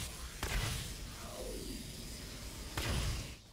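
A fireball whooshes through the air.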